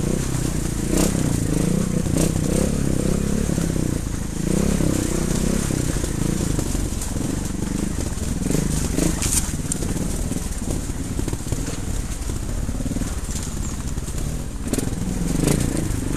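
A motorbike jolts and rattles over rocks.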